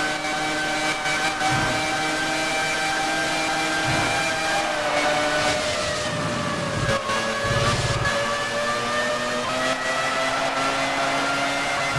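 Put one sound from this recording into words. A racing car engine whines loudly at high speed, its pitch dipping as it slows for a bend and climbing again.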